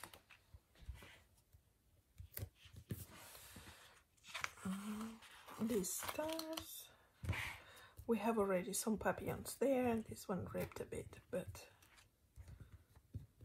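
Fingers press and rub a sticker onto a paper page.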